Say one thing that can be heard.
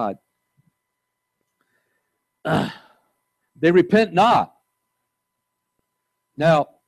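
An older man speaks slowly and calmly through a microphone in a large room, with long pauses.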